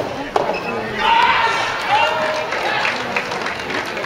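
Young players shout and cheer loudly.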